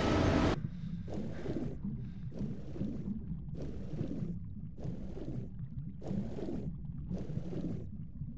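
Water swishes with slow, regular swimming strokes.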